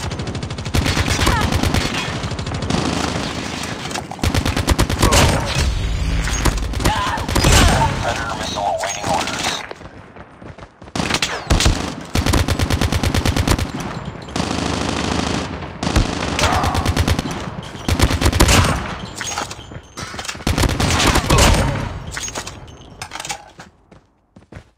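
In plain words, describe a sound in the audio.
Rifle fire crackles in rapid bursts.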